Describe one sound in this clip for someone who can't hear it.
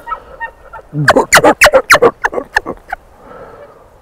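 A bull elk gives a series of loud, rapid grunts.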